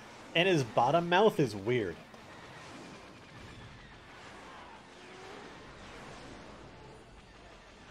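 Laser blasts fire in a space battle.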